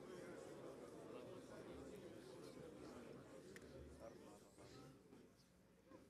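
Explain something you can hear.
A large crowd murmurs softly in an echoing hall.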